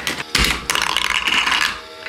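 A marble clatters into a plastic bowl and spins.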